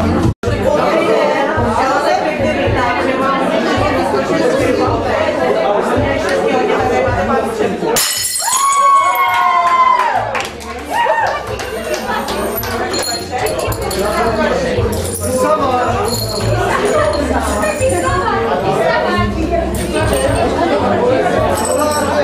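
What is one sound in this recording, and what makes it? A crowd of people chatters and talks all around.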